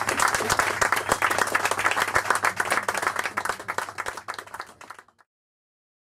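An electric guitar strums chords.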